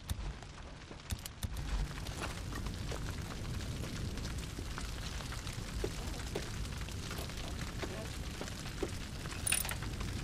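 Metal parts clank and rattle as a motorcycle is searched by hand.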